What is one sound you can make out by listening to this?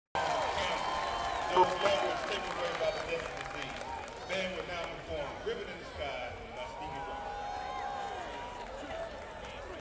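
A marching band plays loud brass music outdoors.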